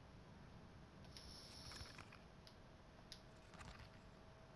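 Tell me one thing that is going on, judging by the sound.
A paper card rustles as it is flipped over.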